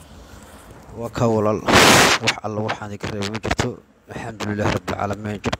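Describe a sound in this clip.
A man speaks close to a microphone in a low, strained voice.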